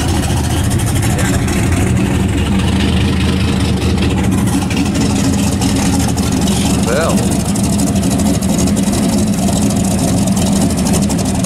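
A powerful car engine rumbles deeply and steadily close by.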